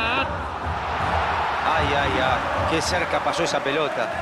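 A crowd roars loudly as an attack nears the goal.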